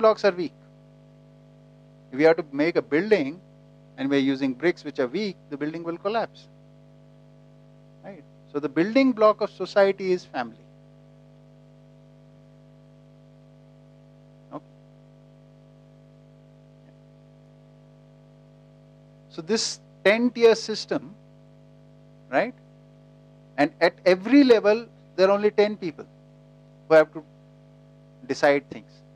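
A middle-aged man speaks calmly into a headset microphone, pausing often.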